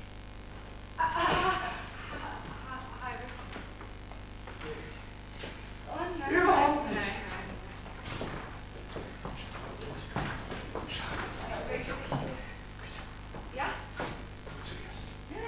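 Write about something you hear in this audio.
A man speaks with emotion in a large hall.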